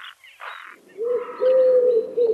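A wood pigeon coos low and softly.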